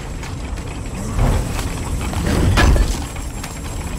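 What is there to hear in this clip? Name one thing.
A heavy stone lid grinds open with a loud burst.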